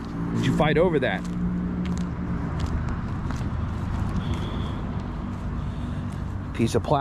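Footsteps swish softly through grass and dry leaves.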